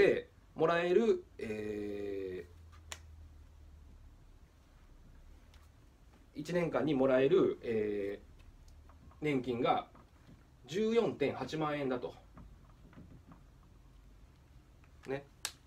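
A man speaks calmly and clearly close by, in short phrases with pauses.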